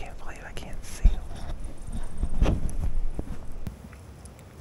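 Pine branches rustle and swish as a hand brushes through them.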